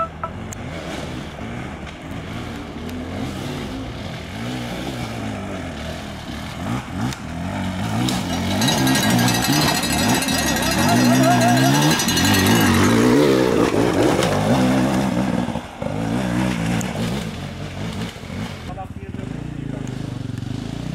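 A dirt bike engine revs and sputters up close, rising and falling in pitch.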